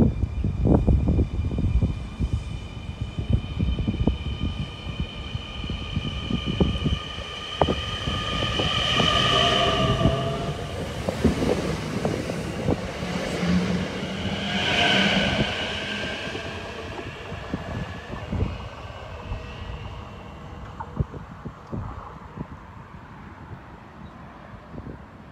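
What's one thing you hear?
An electric train rumbles along the rails close by.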